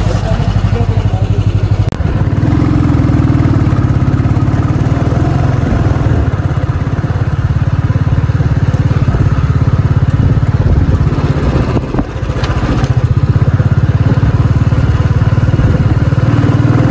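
A motorcycle engine putters steadily up close.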